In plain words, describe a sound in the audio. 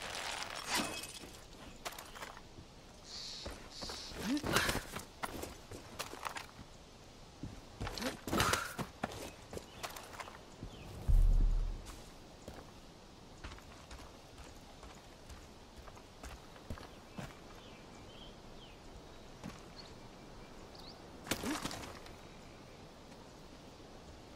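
Footsteps crunch and scuff on rocky ground.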